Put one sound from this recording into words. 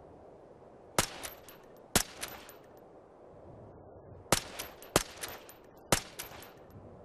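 A rifle fires single sharp shots.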